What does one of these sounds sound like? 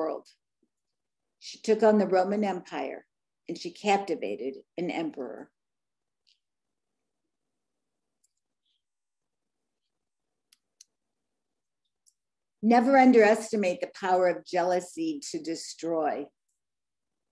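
An older woman speaks calmly through an online call, with long pauses.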